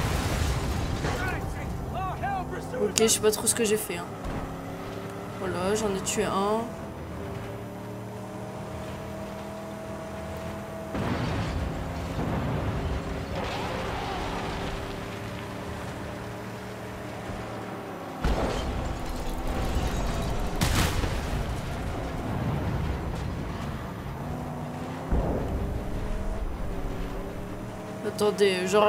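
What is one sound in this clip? A car engine roars and drones steadily.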